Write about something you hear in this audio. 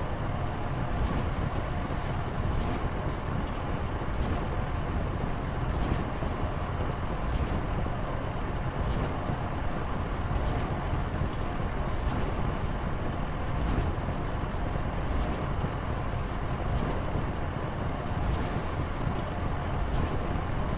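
A machine clicks at a steady, even pace.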